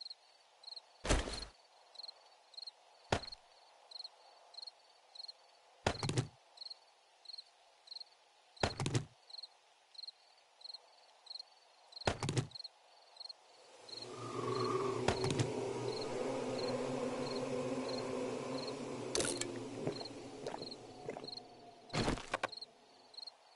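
Short game menu clicks sound as items are selected.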